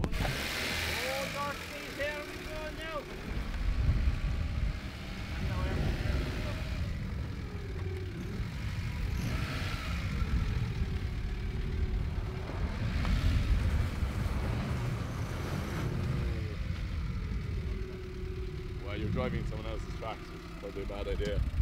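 A car engine revs and strains.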